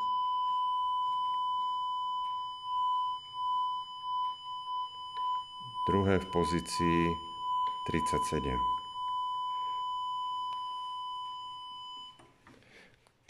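A steady high-pitched tone sounds from a loudspeaker inside a tube, then stops.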